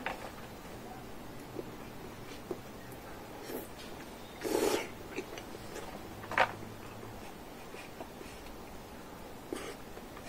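A man chews with smacking sounds.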